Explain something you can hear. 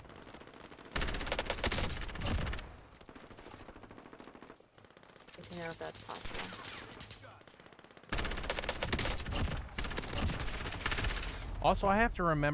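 Rapid gunfire bursts in loud volleys.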